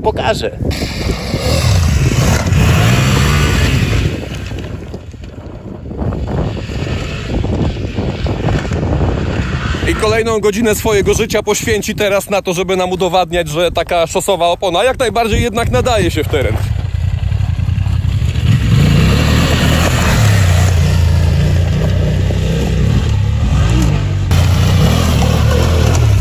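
A motorcycle engine revs and roars.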